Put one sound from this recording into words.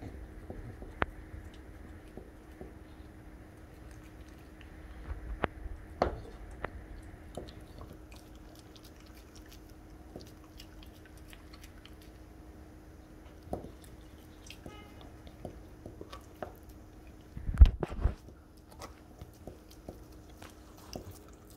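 A dog chews and gnaws on a piece of meat, with wet smacking sounds.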